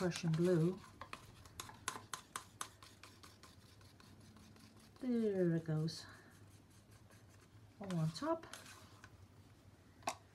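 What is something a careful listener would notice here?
A wooden stick scrapes and taps against a plastic cup.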